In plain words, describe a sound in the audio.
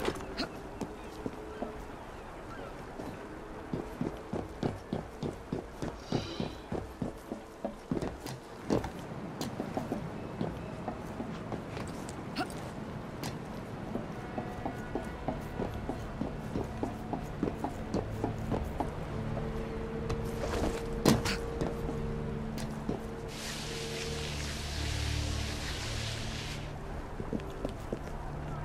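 A game character's footsteps and hands thud rapidly while climbing and running across rooftops.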